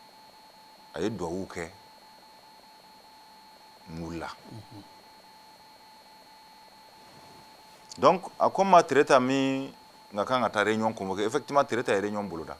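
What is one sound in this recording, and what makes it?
A middle-aged man speaks calmly and clearly into a close microphone, in short bursts with pauses.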